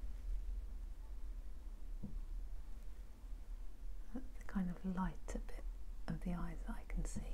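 A paintbrush brushes softly across canvas.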